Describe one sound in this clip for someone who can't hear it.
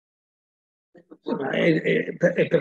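A middle-aged man speaks with animation through an online call.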